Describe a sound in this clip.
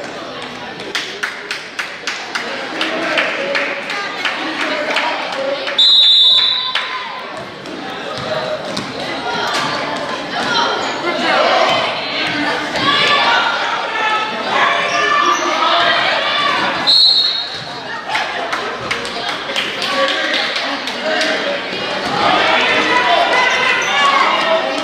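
A crowd of spectators cheers and calls out in an echoing gym.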